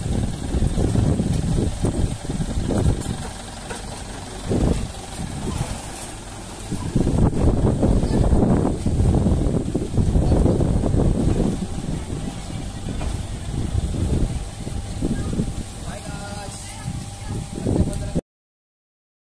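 A truck engine idles with a low rumble nearby.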